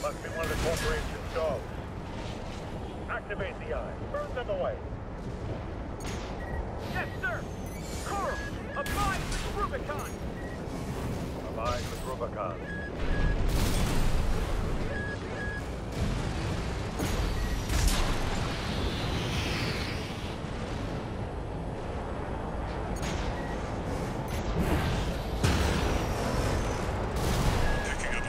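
A heavy machine's engine roars and thrusts.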